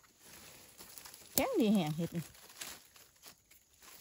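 Dry leaves rustle under hands.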